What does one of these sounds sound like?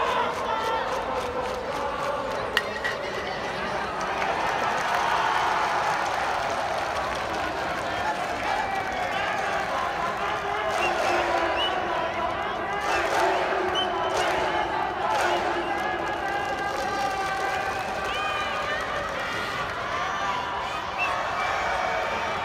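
Young men call out and cheer in the distance, echoing across a large stadium.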